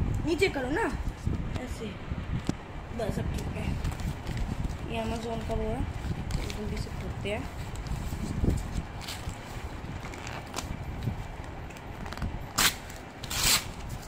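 Paper packaging rustles and crinkles under hands.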